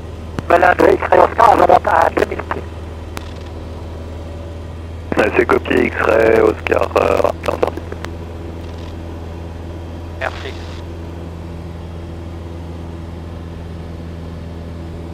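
An aircraft engine drones steadily throughout.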